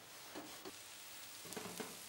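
A metal pot lid clatters.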